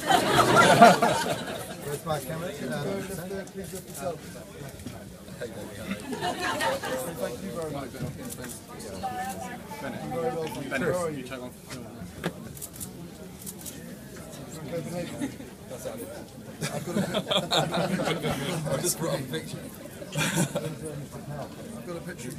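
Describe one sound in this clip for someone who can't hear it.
A crowd of people chatters and laughs in a busy room.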